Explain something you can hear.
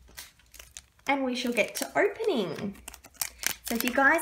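Foil card packs crinkle and rustle in a person's hands.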